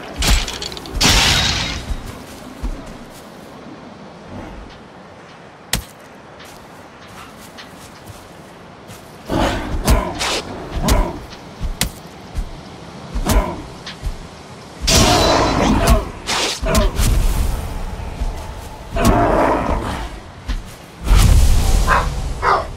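Heavy weapon blows strike and thud again and again.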